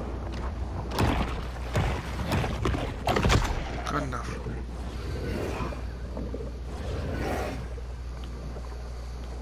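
Water swirls and rumbles low underwater.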